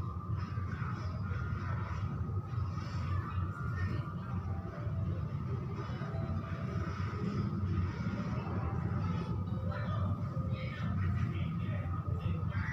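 A hand rubs and scrapes against a wall with a soft rasping.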